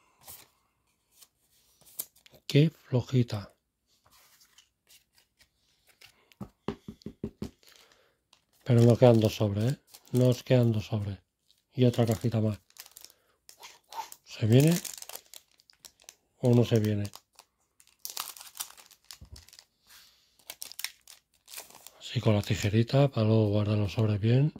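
Playing cards slide and tap against each other.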